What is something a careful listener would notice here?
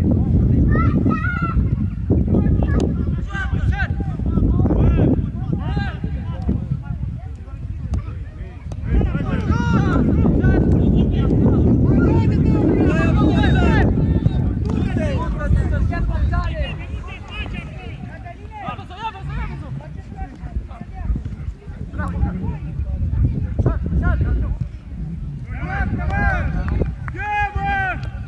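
Men shout to each other outdoors.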